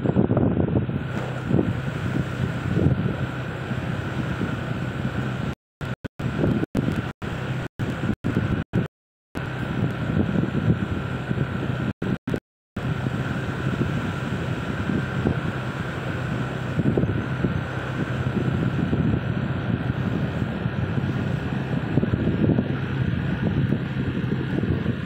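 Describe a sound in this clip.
Tyres rumble over a rough road.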